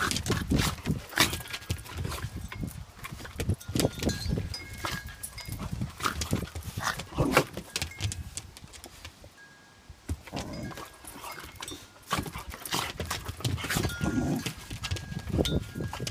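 Dog paws scrabble and thump on a wooden deck.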